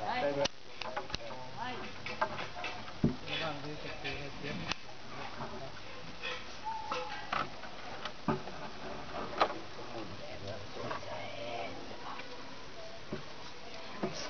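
Children and young men chatter nearby outdoors.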